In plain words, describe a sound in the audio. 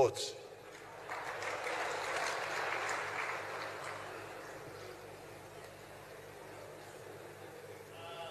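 A large audience laughs and murmurs.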